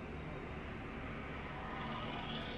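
A passing bus roars close by.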